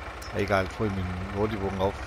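A truck engine idles with a low, steady rumble.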